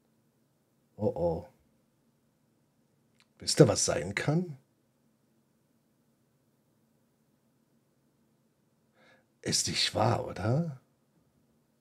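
An older man speaks briefly through a headset microphone, in short bursts.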